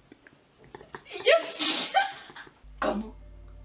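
A young person laughs loudly nearby.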